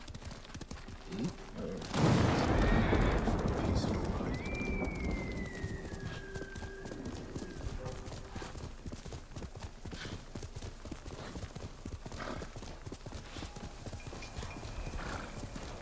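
A horse's hooves gallop steadily.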